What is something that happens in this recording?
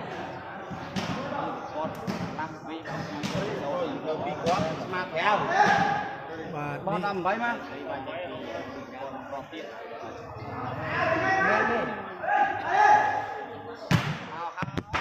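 A ball thuds off a player's foot.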